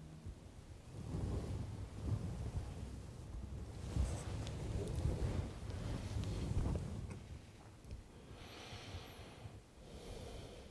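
A middle-aged man murmurs a prayer quietly.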